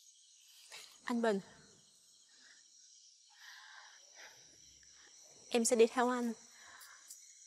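A young woman speaks pleadingly and close by.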